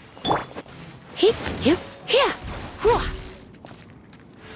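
Magic bursts shimmer and pop.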